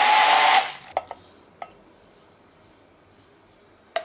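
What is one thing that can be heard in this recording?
Thick liquid pours into a glass.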